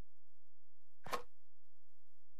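A game menu closes with a short whooshing click.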